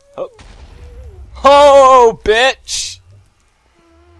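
Fire crackles softly.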